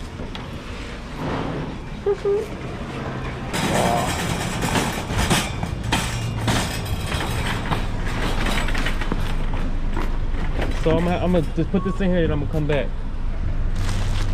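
A shopping cart rattles as it rolls over hard floor and pavement.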